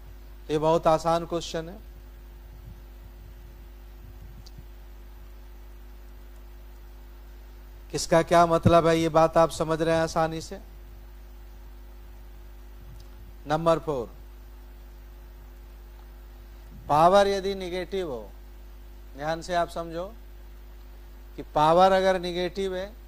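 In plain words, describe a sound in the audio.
A man speaks calmly into a close microphone, in short bursts with pauses.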